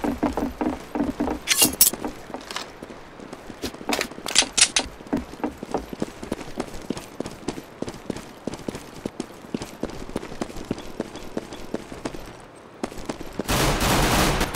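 Footsteps run steadily on hard ground.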